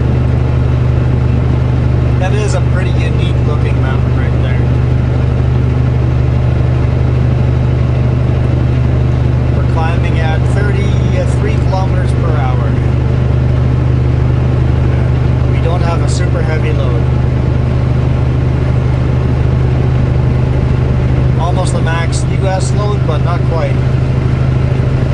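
Tyres hum on the highway.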